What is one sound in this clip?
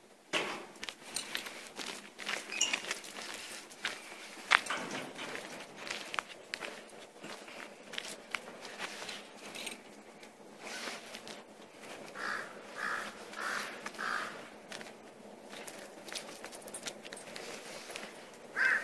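A dog's paws patter and scrape on concrete outdoors.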